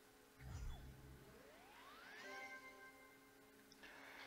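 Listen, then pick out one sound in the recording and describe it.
A video game plays a rising chime for a finished level.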